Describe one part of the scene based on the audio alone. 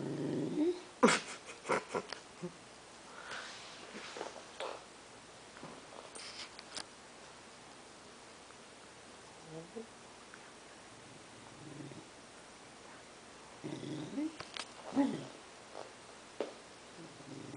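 A dog's paws thump and shuffle on a sofa cushion.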